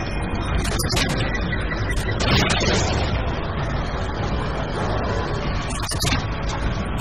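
A gun fires with sharp bangs.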